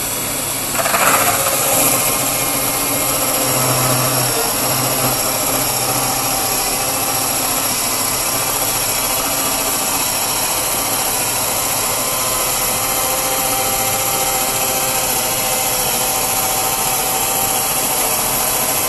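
A sawmill's blade cuts through a log.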